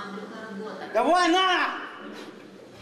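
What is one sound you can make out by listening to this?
A man shouts loudly, his voice rising and falling.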